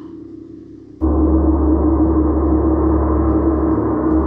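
A large gong booms and shimmers loudly.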